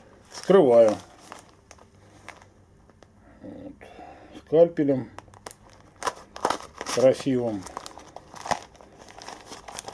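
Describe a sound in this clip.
A foil packet crinkles and rustles in hands.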